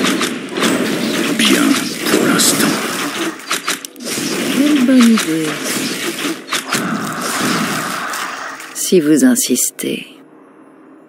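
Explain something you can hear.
Creatures grunt in a fight.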